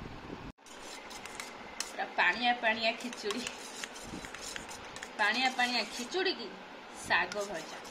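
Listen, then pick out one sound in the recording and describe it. A spoon scrapes and clinks against a metal bowl.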